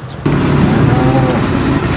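A truck engine rumbles as it drives along.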